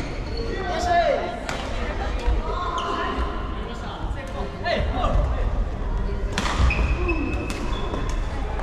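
Shuttlecocks are struck with sharp racket pops in a large echoing hall.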